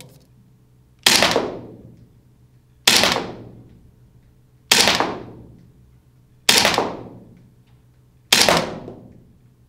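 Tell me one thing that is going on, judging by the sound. A gun fires single shots at a slow, even pace, ringing out in a large room.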